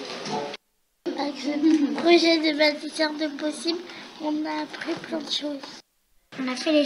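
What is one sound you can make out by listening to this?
A young girl speaks calmly.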